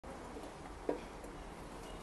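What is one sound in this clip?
A pump bottle clicks as it is pressed.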